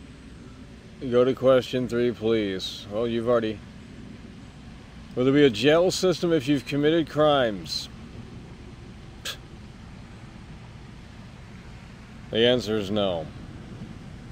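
A man talks casually through a microphone.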